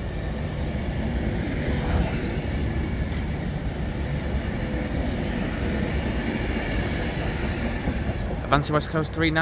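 An electric high-speed passenger train rushes close by.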